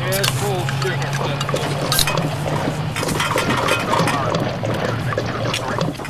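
Two men gulp drinks from cans.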